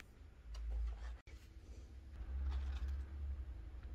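A paper box rustles as it is opened.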